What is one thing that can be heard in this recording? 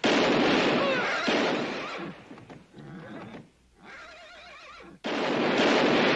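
Horses gallop past over dry ground.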